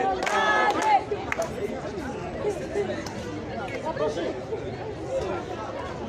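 A crowd murmurs and talks after the chanting.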